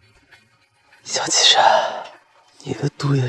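A young man laughs weakly, close by.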